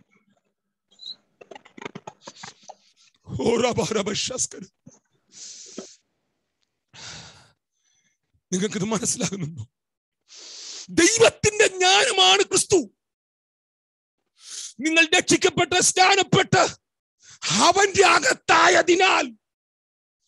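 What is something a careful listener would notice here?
A middle-aged man speaks animatedly and emphatically, close to a microphone.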